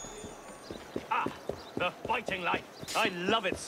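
Footsteps run on stone.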